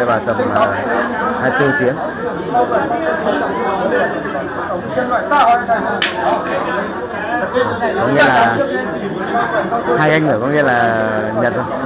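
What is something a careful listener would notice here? Several men talk and murmur nearby.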